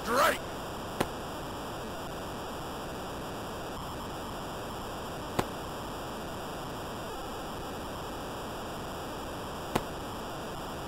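A ball smacks into a catcher's mitt several times.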